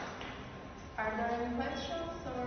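A young woman speaks calmly to the room.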